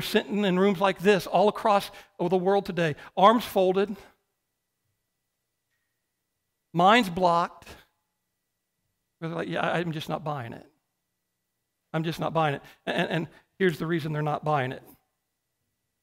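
A man speaks with animation through a microphone, in bursts with pauses.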